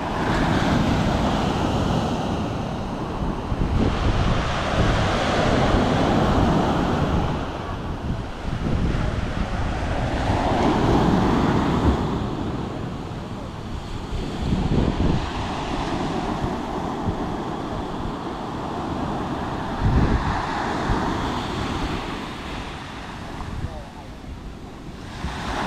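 Waves break and wash up onto the shore in surging rushes.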